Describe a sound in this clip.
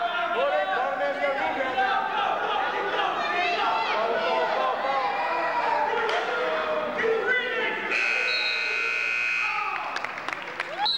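A crowd of young men shouts encouragement excitedly in a large echoing hall.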